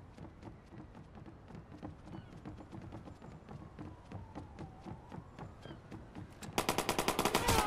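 Quick footsteps run across wooden boards.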